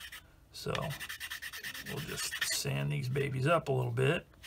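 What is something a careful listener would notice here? A metal blade scrapes rapidly across a sharpening stone.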